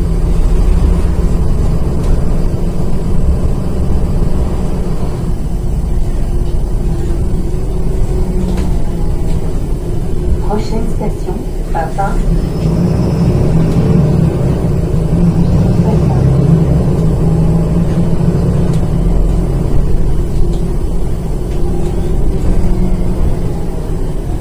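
A bus engine rumbles steadily from inside as the bus rides along.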